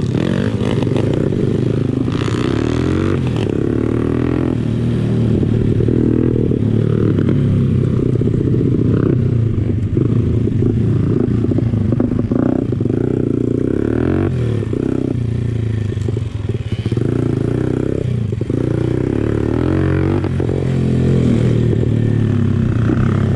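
A dirt bike engine revs up and down loudly close by.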